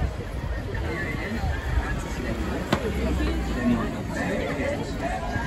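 A crowd of people chatter along a busy street.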